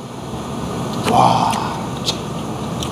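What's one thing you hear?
A man slurps noodles close by.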